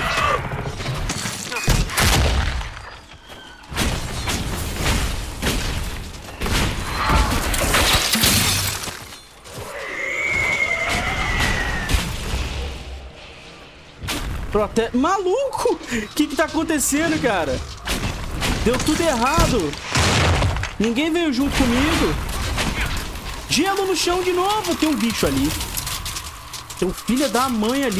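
Magic blasts boom and crackle in a fight.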